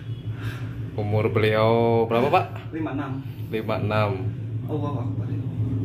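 A middle-aged man groans loudly in discomfort, close by.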